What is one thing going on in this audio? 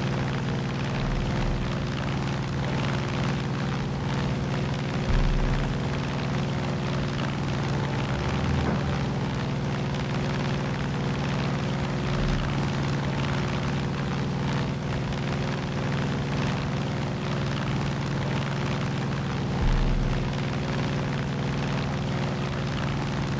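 A propeller plane's piston engine drones in flight.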